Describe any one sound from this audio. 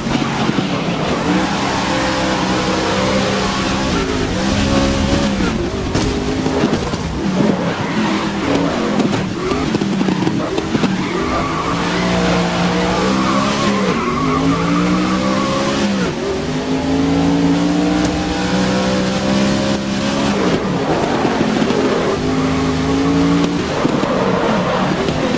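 A racing car engine roars and revs up and down through the gears.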